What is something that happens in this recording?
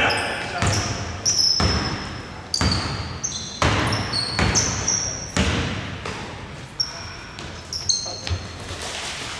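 A basketball bounces with loud echoing thuds in a large hall.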